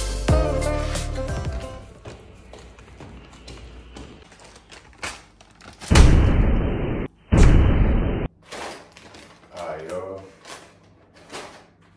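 A paper bag rustles as it is handled.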